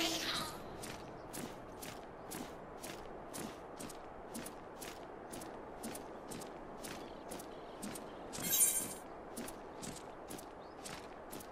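Large wings flap in a steady rhythm.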